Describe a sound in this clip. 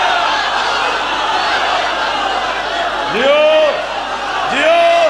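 A crowd of men chants along in unison.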